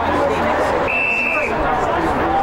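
An umpire blows a short, sharp whistle.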